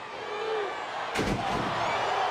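A wrestler slams down hard onto the ring mat.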